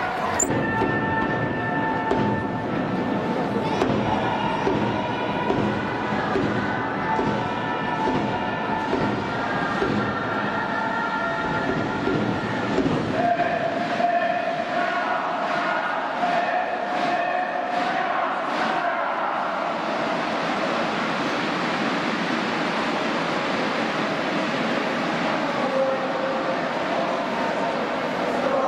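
A large crowd of men and women chants and cheers together in a big echoing stadium.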